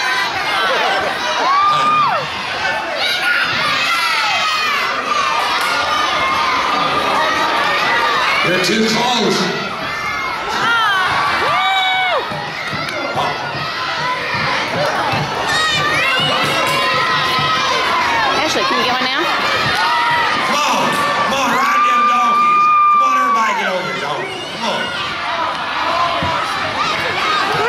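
A large crowd cheers, shouts and screams throughout, echoing in a big hall.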